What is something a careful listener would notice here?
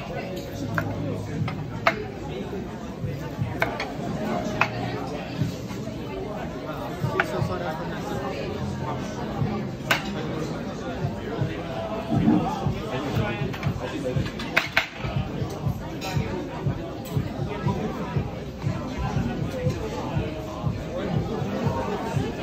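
A knife cuts through meat and taps on a wooden board.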